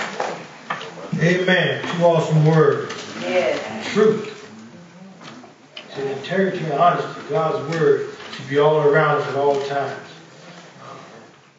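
A man speaks slowly and firmly through a microphone in an echoing hall.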